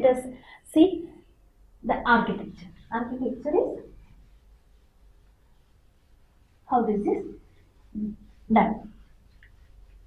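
A young woman speaks calmly and clearly, close by, with pauses.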